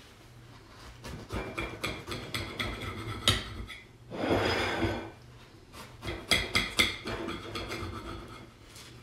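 A knife scrapes and taps against a plate.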